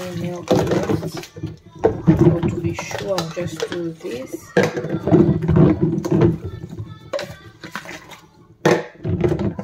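Water sloshes in a basin as bottles are washed.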